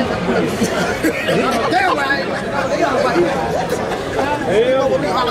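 A crowd of men talk loudly over one another close by.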